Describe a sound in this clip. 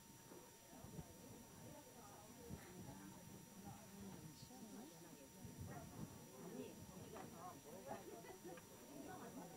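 Several women talk with one another nearby.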